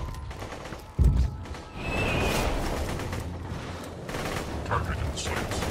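A gun fires with heavy bangs.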